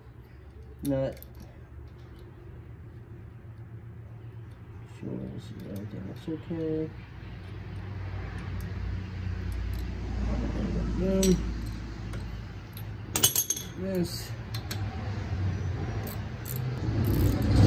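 Metal parts clink and tap against each other.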